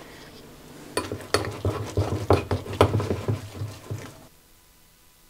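A spoon scrapes and clinks in a ceramic bowl.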